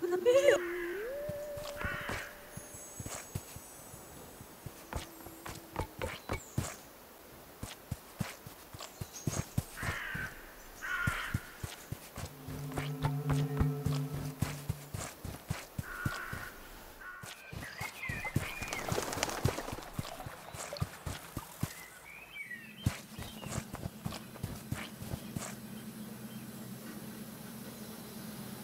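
Small footsteps patter quickly over the ground.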